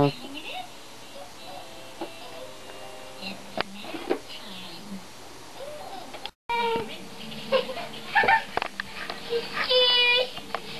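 Young girls babble and talk nearby.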